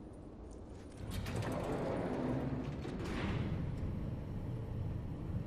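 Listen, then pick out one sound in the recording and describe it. Heavy metal doors slide open with a rumbling hiss.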